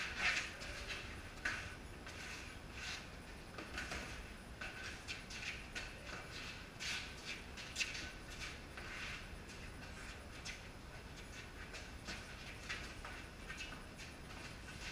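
Sneakers shuffle and squeak on a hard floor.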